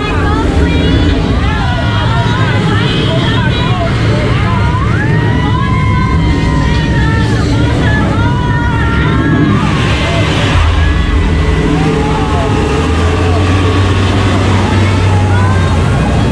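Rushing water churns and splashes.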